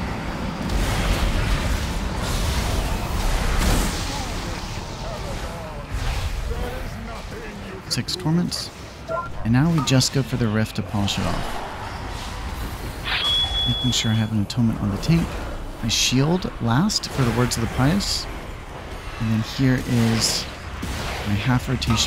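Magic spells crackle and whoosh in a noisy game battle.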